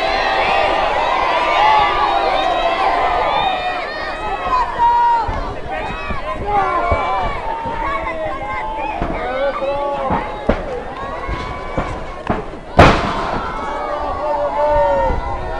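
A large outdoor crowd shouts and cheers throughout.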